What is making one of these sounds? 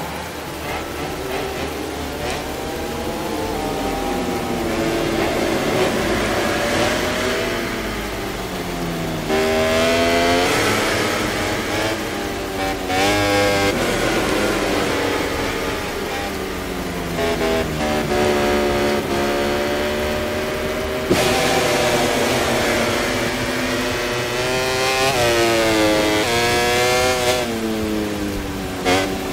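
A racing motorcycle engine screams, revving up and down as gears shift.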